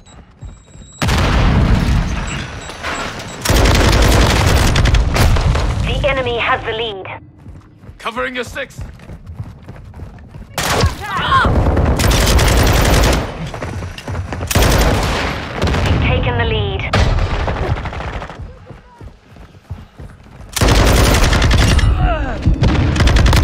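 An automatic rifle fires in loud rapid bursts.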